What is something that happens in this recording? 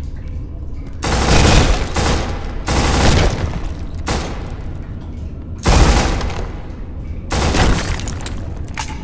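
A rifle fires loud bursts of shots that ring off the walls.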